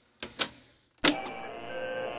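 A reel-to-reel tape recorder begins playing back music.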